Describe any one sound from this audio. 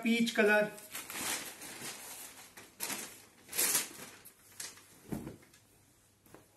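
Fabric rustles as a cloth is unfolded and shaken.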